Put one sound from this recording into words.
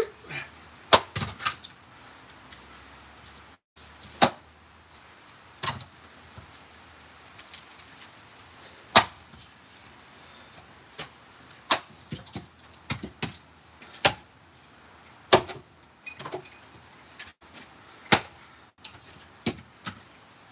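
An axe splits wood with sharp cracks.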